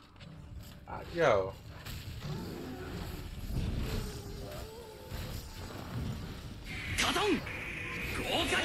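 A large beast roars loudly.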